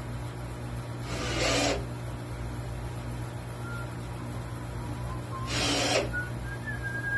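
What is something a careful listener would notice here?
A cordless drill whirs in short bursts, driving screws into wood.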